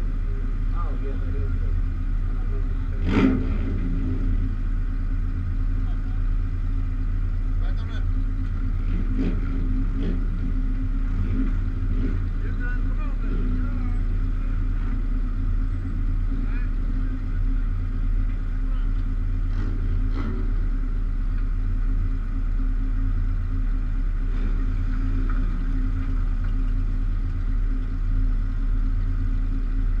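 A car engine idles steadily close by.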